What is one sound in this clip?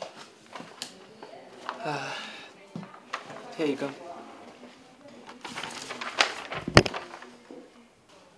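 Papers rustle as they are handed over.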